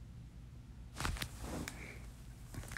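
Burlap rustles softly as hands pull it apart.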